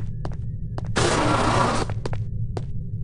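A sliding door hisses open.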